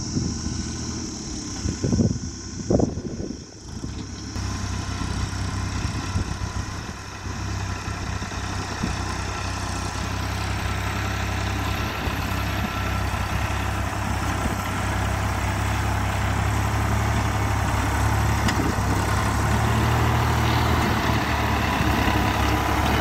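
A tractor engine rumbles steadily nearby.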